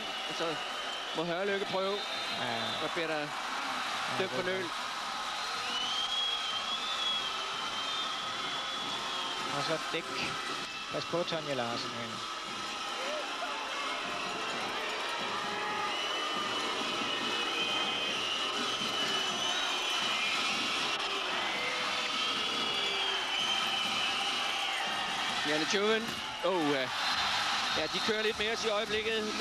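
A large crowd roars and cheers steadily in a big echoing hall.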